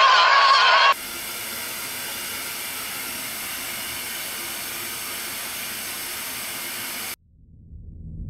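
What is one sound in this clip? Television static hisses steadily.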